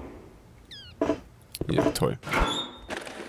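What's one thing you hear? A metal locker door rattles as it is tugged.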